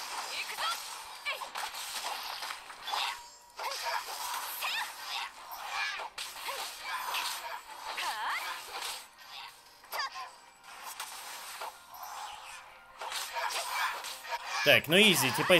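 Swords clash and swish in rapid fighting.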